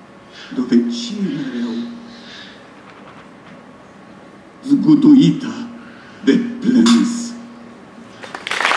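A man speaks into a microphone with animation, his voice echoing in a large hall.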